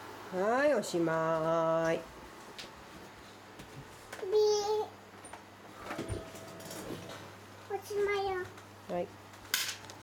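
A toddler squeals and babbles in a high voice close by.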